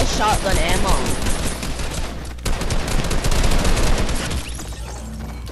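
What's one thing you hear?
Rapid rifle shots crack close by.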